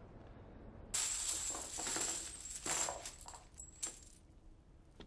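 Coins and banknotes clatter and rustle as they are poured onto a table.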